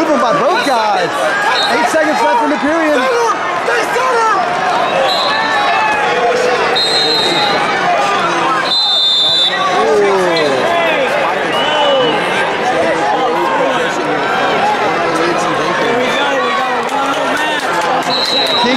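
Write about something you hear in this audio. A large crowd of spectators shouts and cheers in an echoing hall.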